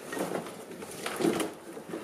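Loose wires rattle and rustle as they are moved.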